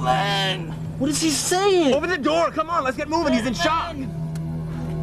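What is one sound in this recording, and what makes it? A man cries out loudly in a high, strained voice.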